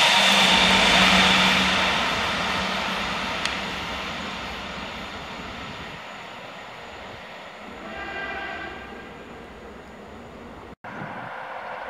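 A train rumbles along a track and fades into the distance.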